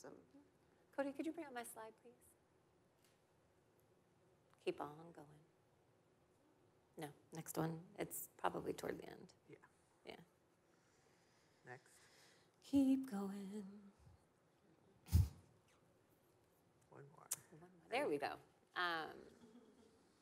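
A woman speaks calmly through a microphone, with short pauses.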